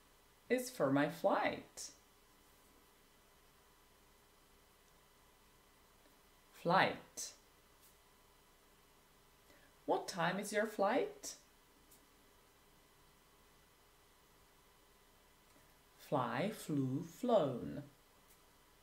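A young woman speaks clearly and slowly into a close microphone, in short phrases with long pauses.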